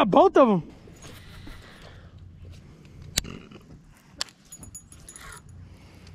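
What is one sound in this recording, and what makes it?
A fishing reel clicks and whirs as it is reeled in.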